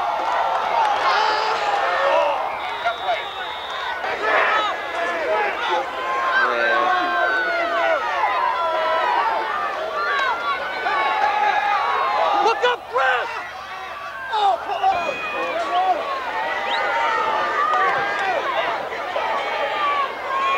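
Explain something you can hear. A large crowd of spectators talks and cheers outdoors.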